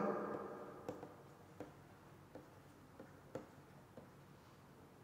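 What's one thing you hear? A pen taps and scratches lightly on a writing tablet.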